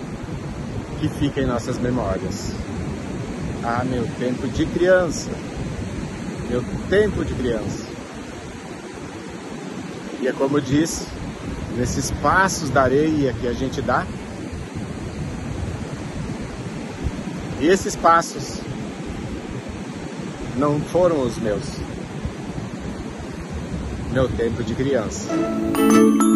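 A middle-aged man talks calmly close to a phone microphone.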